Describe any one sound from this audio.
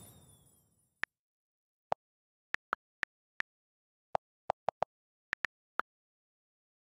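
Soft keyboard clicks tap in a short run.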